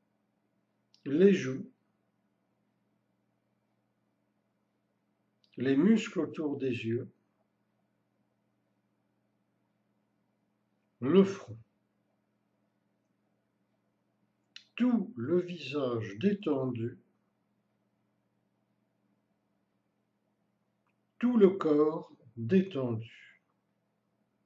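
An elderly man speaks calmly and softly in short phrases with long pauses.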